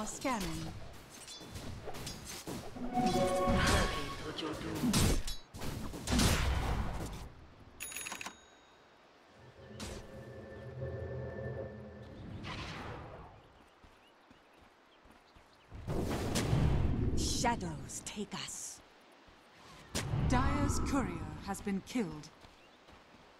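Game spell effects whoosh and crackle in loud bursts.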